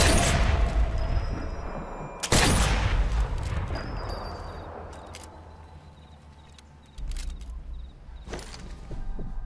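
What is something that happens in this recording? A rifle fires loud shots that echo and fade away slowly.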